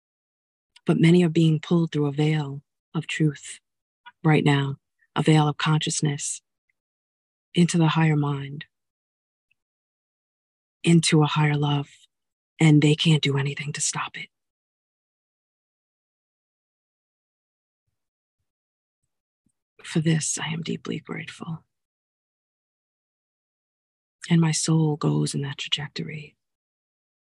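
A middle-aged woman speaks calmly and close up, pausing between phrases.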